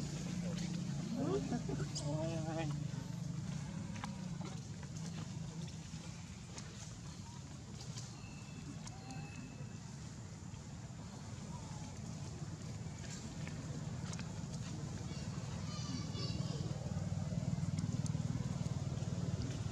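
Monkeys munch on food.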